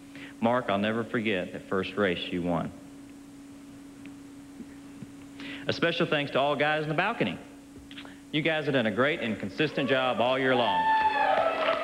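A man speaks calmly into a microphone, heard through a loudspeaker in a large hall.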